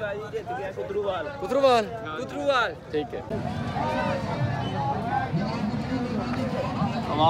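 A crowd of men chatters outdoors.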